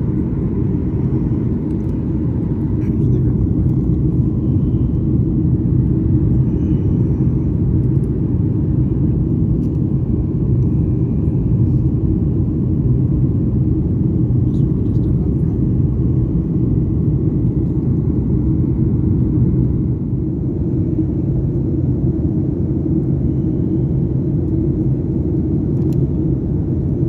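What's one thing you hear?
A jet engine roars steadily with a low, deep rumble.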